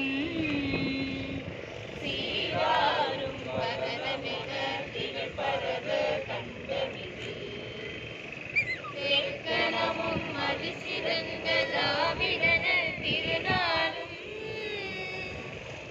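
A group of men and women chant slogans together loudly outdoors.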